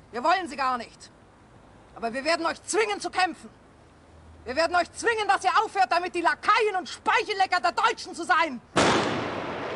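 A woman speaks sharply and with anger, close by.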